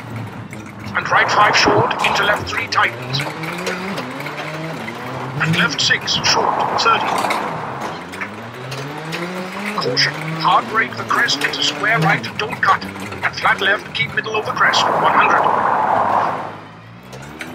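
Tyres skid and crunch over loose gravel.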